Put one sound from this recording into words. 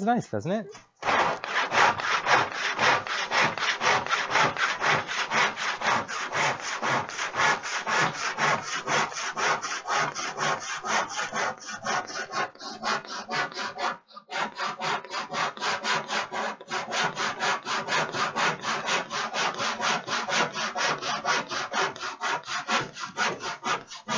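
A hand plane rasps along a wooden board in quick, steady strokes.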